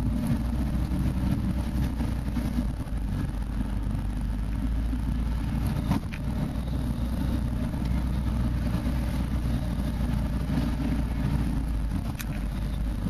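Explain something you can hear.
A vehicle engine rumbles steadily from inside the cab.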